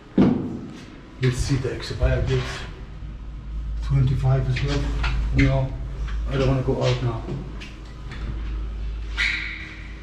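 A lift hums low as it moves.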